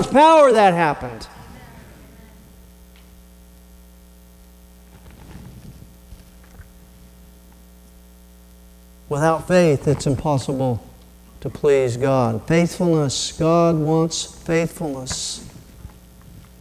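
A middle-aged man preaches with emphasis through a microphone in an echoing hall.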